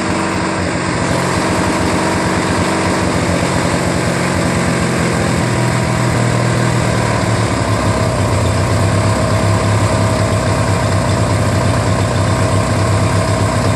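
A small engine runs loudly and steadily close by, picking up slightly in pitch.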